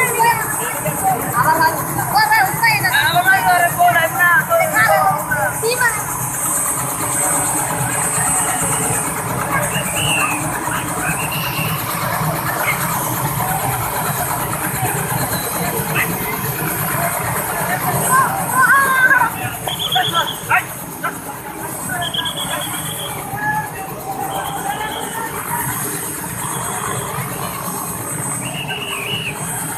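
A crowd of men chatters and shouts nearby outdoors.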